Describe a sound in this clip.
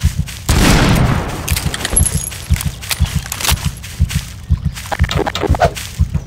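Footsteps patter quickly as someone runs.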